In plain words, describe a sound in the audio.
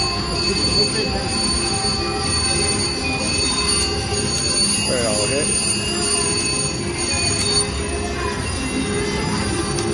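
A slot machine plays electronic chimes and jingles.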